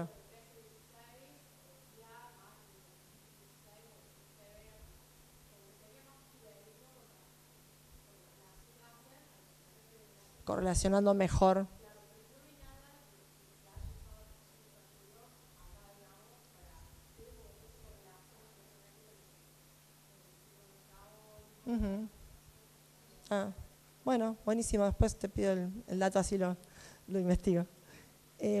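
A young woman speaks steadily into a microphone through a loudspeaker in an echoing room.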